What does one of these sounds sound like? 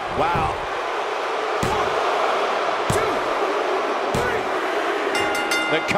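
A referee slaps the ring mat three times in a count.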